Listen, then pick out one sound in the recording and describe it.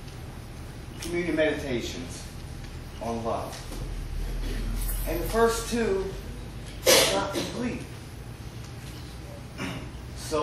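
A man speaks with animation in short bursts.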